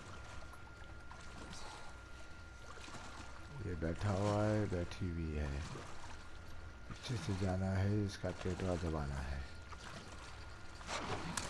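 Water sloshes as a person wades through it.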